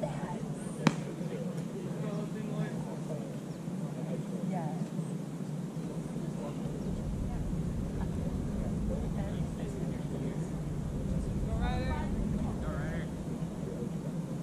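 Men call out from a distance across the field.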